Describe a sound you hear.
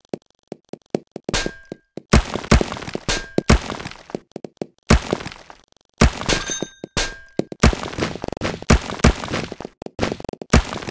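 Small balls clatter and bounce against each other.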